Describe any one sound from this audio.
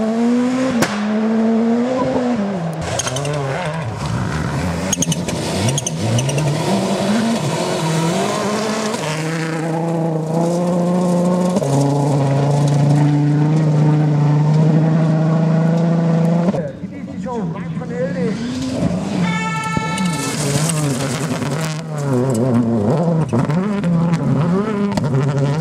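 A rally car engine revs hard and roars past, rising and falling in pitch.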